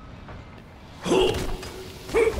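A gun fires a loud burst of shots.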